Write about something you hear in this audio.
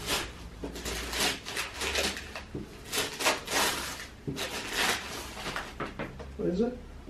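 Wrapping paper rips and crinkles loudly in quick bursts.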